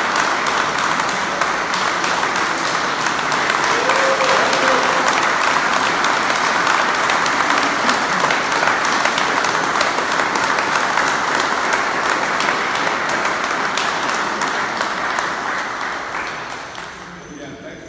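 A crowd applauds loudly in an echoing hall.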